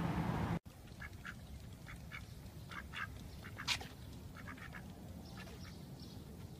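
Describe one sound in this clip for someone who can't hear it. Ducks quack softly nearby.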